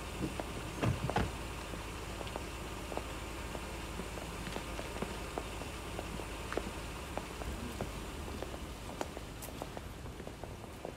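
Hard-soled shoes click on paving as several men walk.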